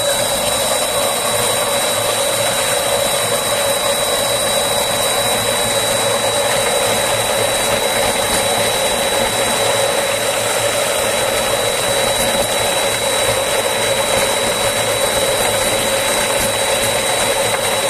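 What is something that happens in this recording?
A small electric motor whirs steadily at high speed.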